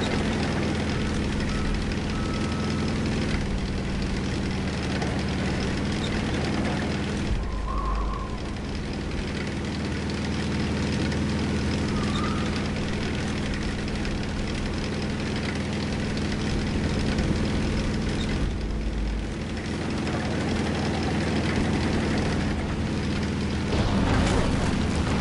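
Tank tracks clatter and squeak over the ground.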